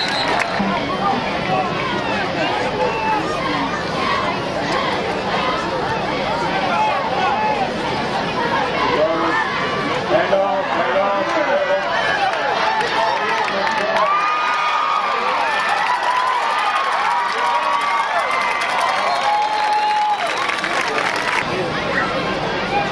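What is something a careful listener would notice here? A large crowd of spectators cheers and shouts outdoors.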